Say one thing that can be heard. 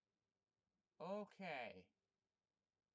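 A young woman speaks briefly and quietly close by.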